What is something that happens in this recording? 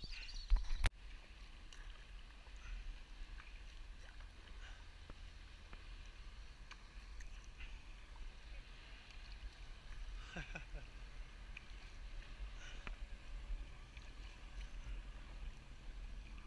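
A paddle splashes and drips in calm water.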